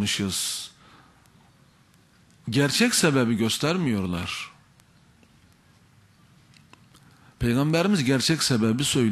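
A middle-aged man speaks emphatically into a microphone, in bursts with pauses.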